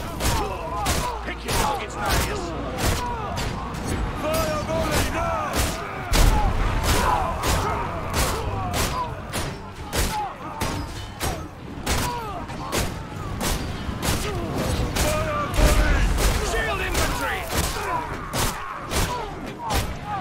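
Soldiers shout and scream in a chaotic battle.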